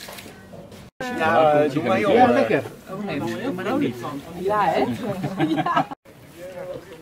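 Several adults talk and laugh close by with animation.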